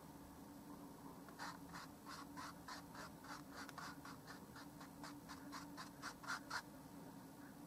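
A paintbrush dabs and scrubs on canvas in quick, light taps.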